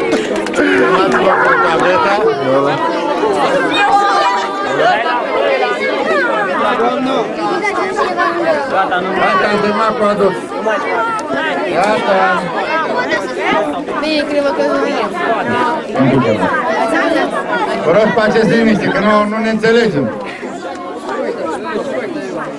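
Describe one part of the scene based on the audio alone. A crowd of children and adults chatters outdoors.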